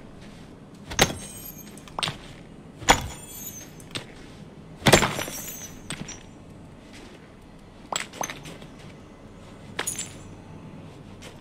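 A pickaxe strikes rock with sharp, ringing knocks.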